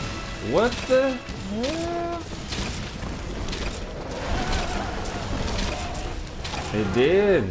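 Weapons clang and slash against a monster.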